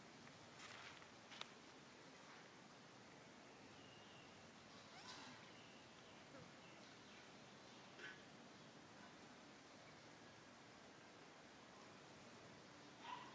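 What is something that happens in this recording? A baby long-tailed macaque squeaks.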